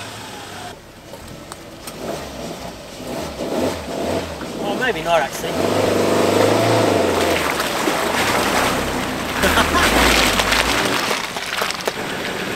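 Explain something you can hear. An off-road vehicle's engine revs hard as it churns through mud.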